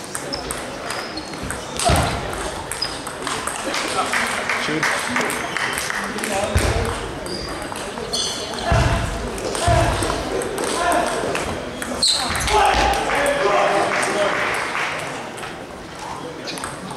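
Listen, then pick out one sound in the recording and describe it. Sneakers squeak on the floor of a large echoing hall.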